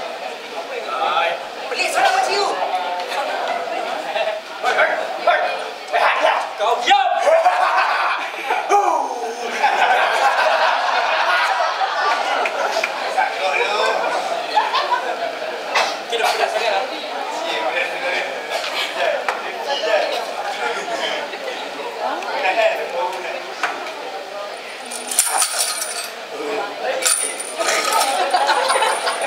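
Several adult men and women chatter nearby in an echoing hall.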